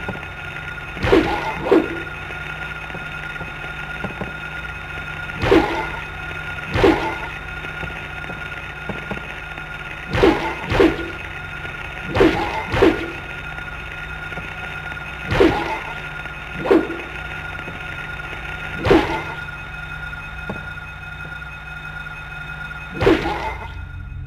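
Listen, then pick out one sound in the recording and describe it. A wooden plank strikes creatures with heavy thuds.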